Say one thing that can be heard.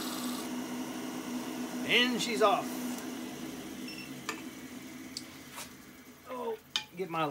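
A lathe motor hums and slowly winds down.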